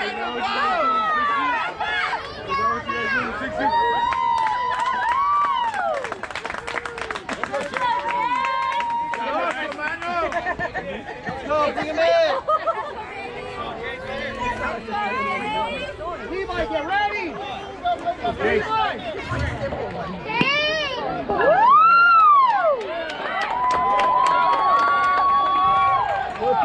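Young children shout and cheer loudly nearby.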